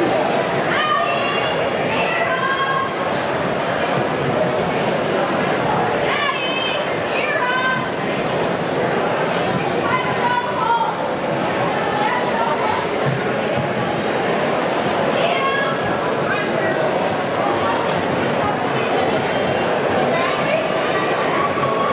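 A man announces loudly over a loudspeaker.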